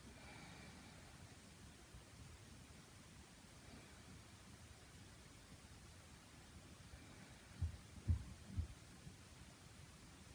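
A young woman breathes slowly and deeply close by.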